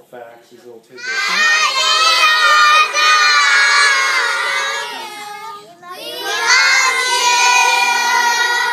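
A group of young children shout and cheer together loudly.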